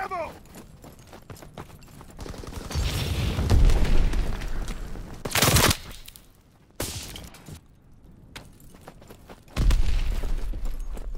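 Footsteps crunch on snow and stone.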